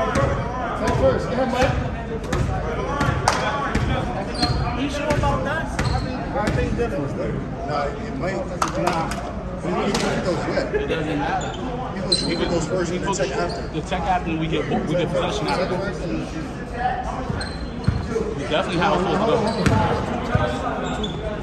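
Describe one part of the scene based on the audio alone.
Several young men talk and call out in a large echoing gym.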